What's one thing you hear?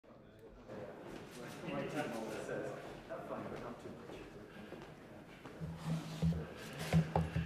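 Footsteps tap on a hard floor in an echoing room.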